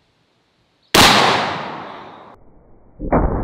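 A shotgun fires a single loud blast outdoors that echoes away.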